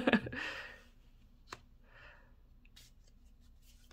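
A card is set down on a soft surface.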